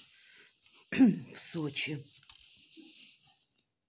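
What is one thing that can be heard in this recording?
A plastic case taps and clicks as it is turned over.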